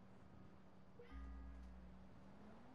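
A short electronic notification chime sounds.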